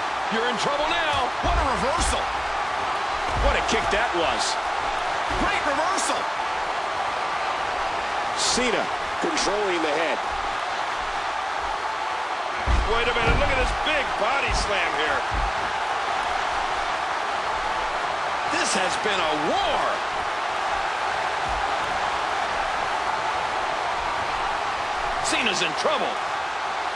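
A large arena crowd cheers and roars in a wrestling video game.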